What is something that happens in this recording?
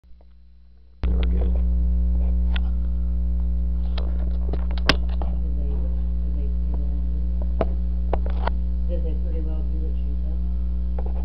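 A television plays loud static with a steady low hum and crackles.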